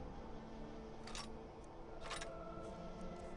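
A metal dagger clatters as it is dropped.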